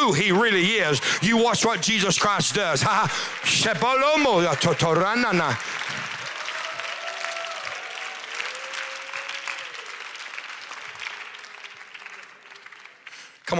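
A crowd of people cheers and calls out.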